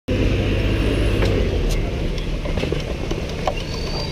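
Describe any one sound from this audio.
A bus drives past.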